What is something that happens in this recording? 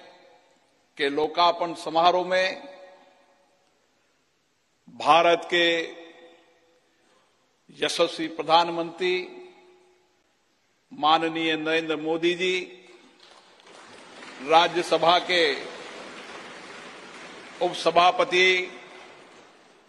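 A man speaks slowly and formally into a microphone in a large echoing hall, pausing between phrases.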